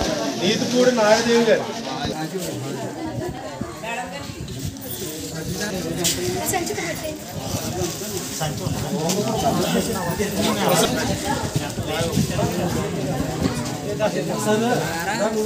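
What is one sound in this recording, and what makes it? Plastic bags rustle as they are handed over.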